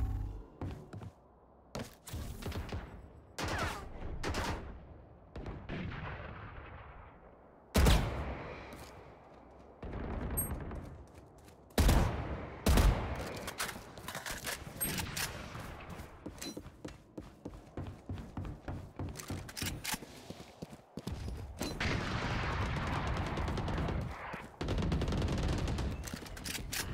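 Quick footsteps run on a hard floor.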